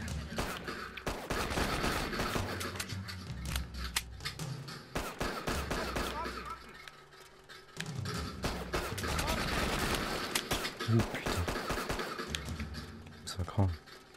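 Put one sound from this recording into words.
Gunshots crack repeatedly with a short echo.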